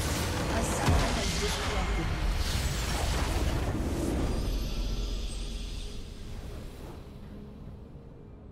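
A crystal structure shatters in a loud, rumbling explosion that fades away.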